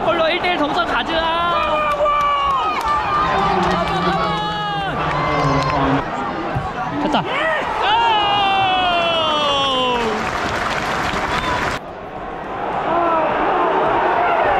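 A large stadium crowd sings loudly.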